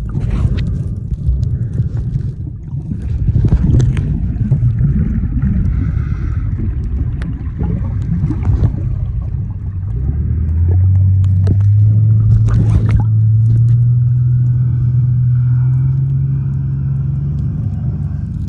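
Muffled underwater water noise swirls and rumbles throughout.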